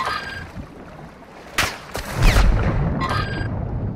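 Water splashes as a swimmer dives under the surface.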